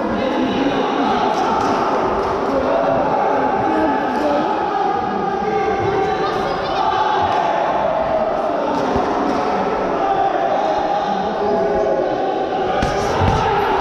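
Several men and boys talk nearby in a large echoing hall.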